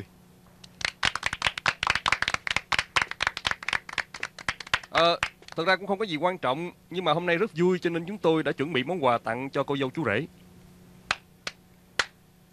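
Several people clap their hands.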